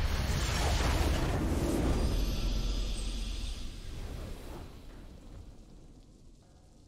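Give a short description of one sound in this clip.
A game's victory fanfare swells loudly and fades away.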